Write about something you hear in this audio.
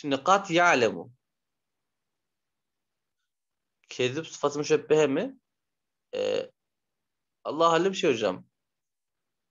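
A man speaks calmly in short phrases, heard close through a microphone.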